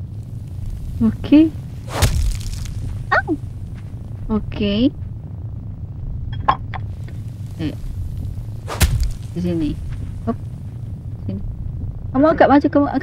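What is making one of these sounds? A young woman speaks close to a microphone, in short, animated bursts.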